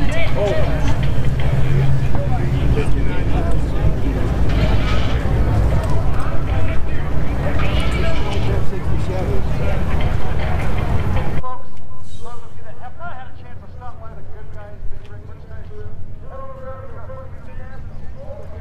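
Men and women chat at a distance.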